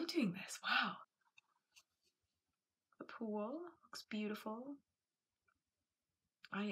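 A young woman talks calmly, close to a microphone, with pauses.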